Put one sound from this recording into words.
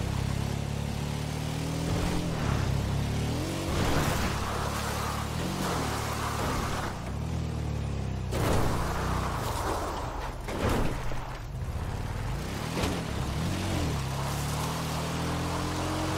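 Tyres crunch and rattle over rough dirt and gravel.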